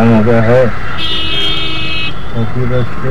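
A vehicle horn honks briefly.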